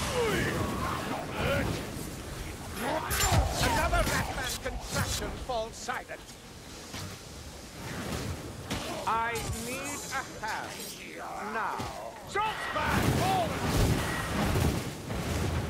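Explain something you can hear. Fire magic crackles and roars in bursts.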